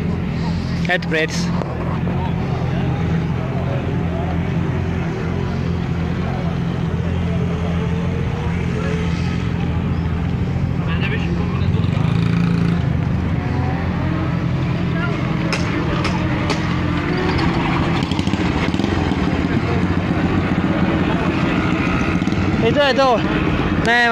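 A motorcycle engine idles and revs with a steady low rumble.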